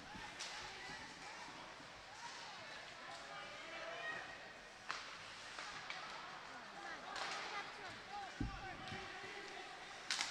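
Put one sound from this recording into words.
A crowd in an echoing rink chatters and calls out.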